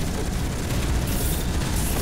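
A laser weapon fires with a harsh buzz.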